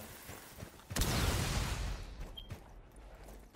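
A rifle fires a loud shot that rings out and fades.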